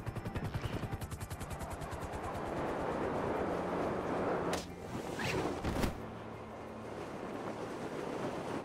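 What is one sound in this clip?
Wind rushes loudly past, rising and falling.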